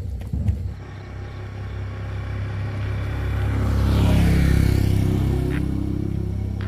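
A motorbike engine approaches, passes close by and fades.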